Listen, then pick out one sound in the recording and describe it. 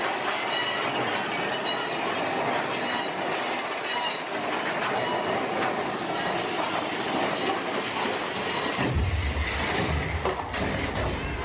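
A ride car rumbles and clatters along its track.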